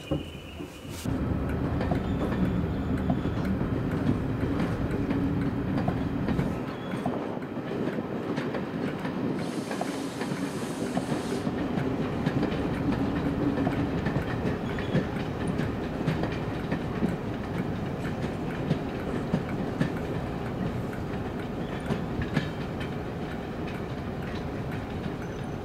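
Train wheels clatter steadily over rail joints.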